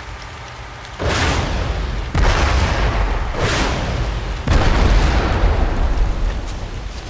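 A rifle fires loud, booming shots that echo and rumble away.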